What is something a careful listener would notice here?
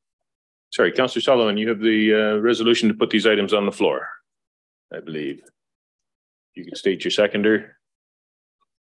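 An older man speaks calmly through a microphone in an online call.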